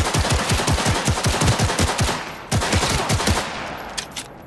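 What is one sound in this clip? A pistol fires in rapid bursts of gunshots.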